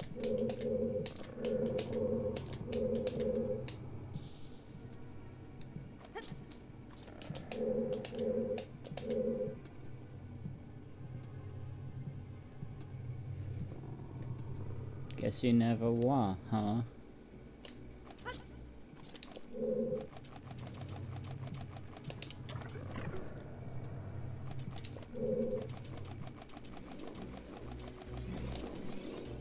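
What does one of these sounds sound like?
Video game music plays steadily with short beeping notes.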